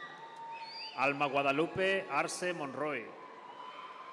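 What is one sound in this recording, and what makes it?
A man speaks loudly over a loudspeaker in a large echoing hall.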